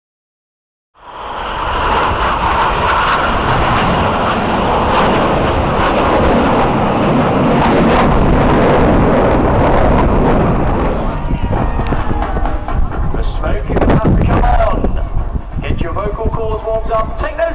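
Jet planes roar loudly overhead.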